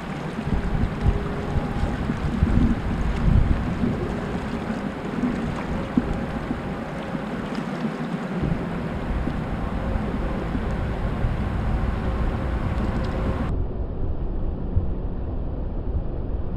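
Water laps and splashes against a small boat's hull.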